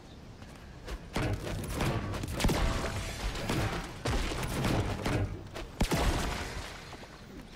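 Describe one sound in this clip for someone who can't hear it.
A pickaxe strikes wood and metal with repeated knocks.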